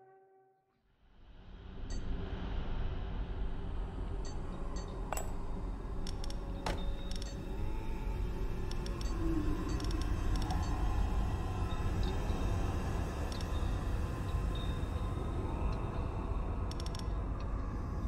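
Deep, dark game music plays steadily.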